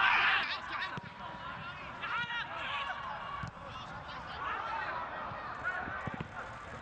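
A football is kicked with dull thuds on an open field.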